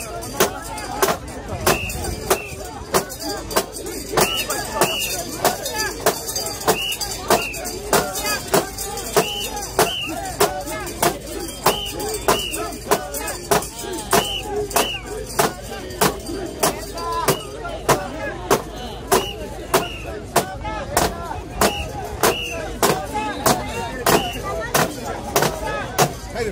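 Metal fittings on a carried portable shrine clank in a steady rhythm.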